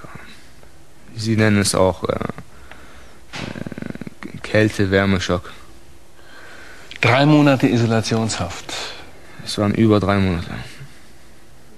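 A man asks questions calmly.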